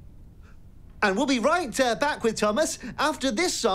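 A man speaks loudly and excitedly, close by.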